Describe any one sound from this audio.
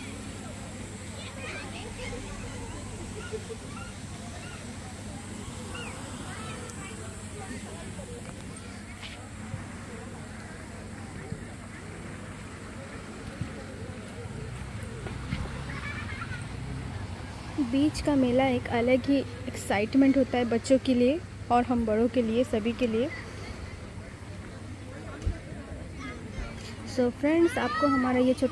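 Small waves lap gently against a sandy shore.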